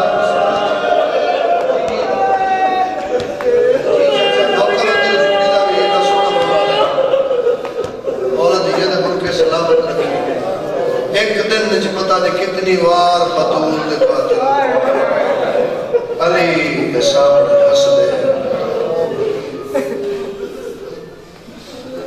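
A man recites loudly and with passion through a microphone, his voice echoing in a hall.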